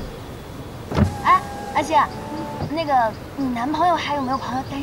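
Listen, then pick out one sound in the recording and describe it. A woman talks cheerfully from inside a car.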